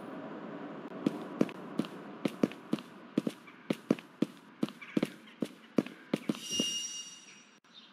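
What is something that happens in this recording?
Footsteps walk steadily on pavement.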